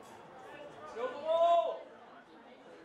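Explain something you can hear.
A young man yells loudly nearby.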